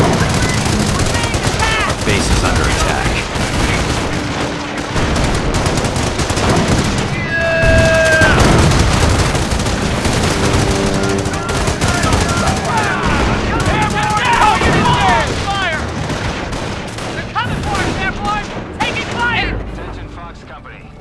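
Gunfire crackles and explosions boom in a battle.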